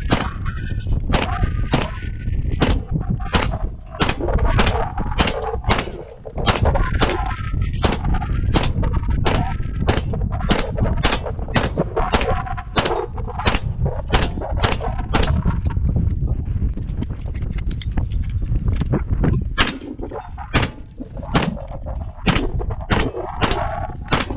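An air rifle fires single shots outdoors at a steady pace, each with a sharp crack.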